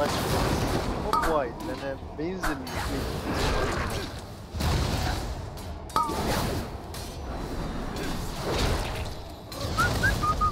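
Spell effects crackle and boom in a busy game battle.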